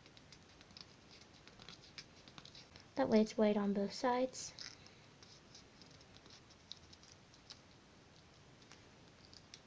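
Fingers fold and crinkle a small sheet of paper.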